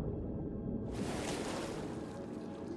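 Water splashes as a person breaks the surface.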